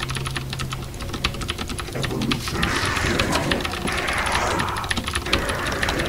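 A computer mouse and keyboard click rapidly.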